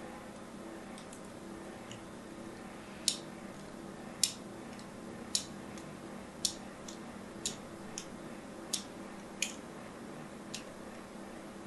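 A sharp point scratches into soap with small crisp crackles.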